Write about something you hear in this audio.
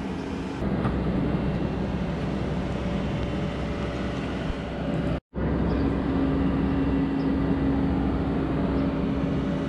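A small excavator's diesel engine rumbles steadily close by.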